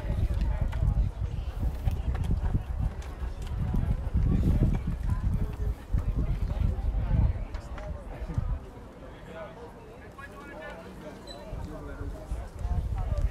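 Young men call out in the distance across an open field.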